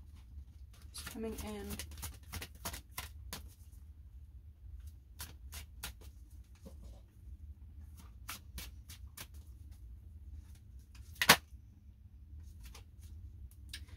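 Playing cards are shuffled, with quick soft riffling and flicking.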